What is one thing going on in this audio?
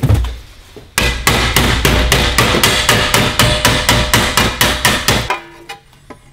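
A hammer strikes a metal rod in a vise with sharp ringing blows.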